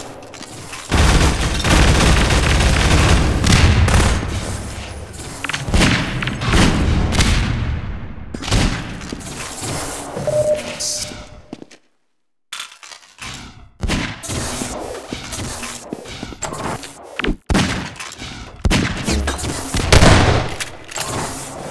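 Gunfire bursts out in rapid loud shots.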